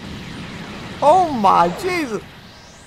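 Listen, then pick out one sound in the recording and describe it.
A young man shouts loudly while firing an energy blast.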